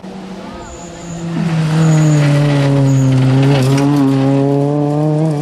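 A second rally car engine roars loudly, rising in pitch as it shifts gears.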